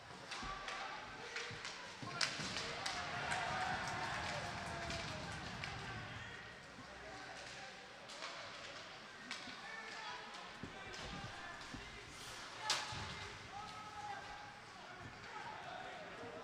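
Ice skates scrape and carve across an ice rink.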